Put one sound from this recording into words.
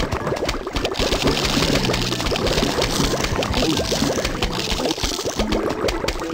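Game mushrooms fire with quick soft puffing pops.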